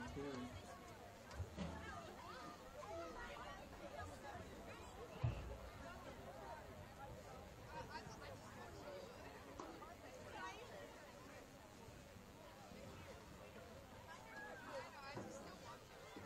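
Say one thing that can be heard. A crowd of young players chatters and calls out outdoors.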